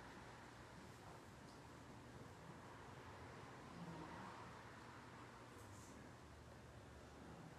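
A woman reads aloud steadily in a large, echoing hall.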